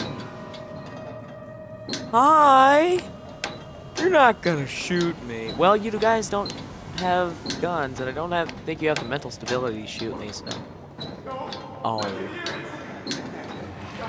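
Hands and feet clank on the rungs of a metal ladder.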